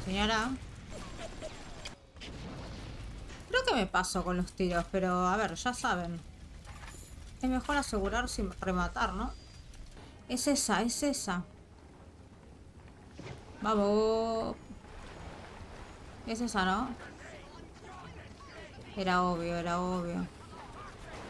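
A young woman speaks with animation close to a headset microphone.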